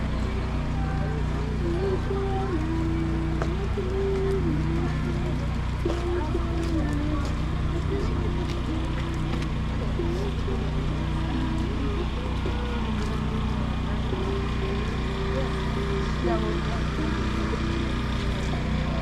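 A large crowd of men and women chatters outdoors at close range.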